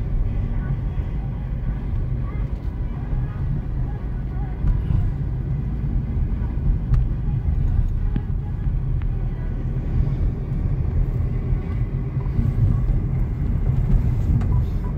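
A car's engine and road noise rumble from inside the car as it drives along a street.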